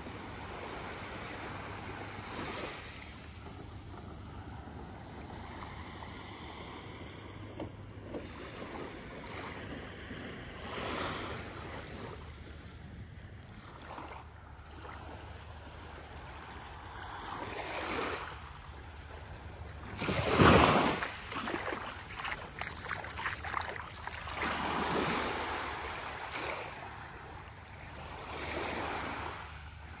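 Small waves lap gently on a sandy shore, rising and falling.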